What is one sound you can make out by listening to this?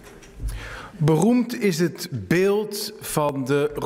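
A man speaks firmly into a microphone in a large echoing hall.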